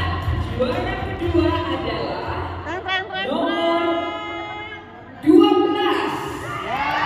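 Women sing together in a loud, lively group, echoing in a large hall.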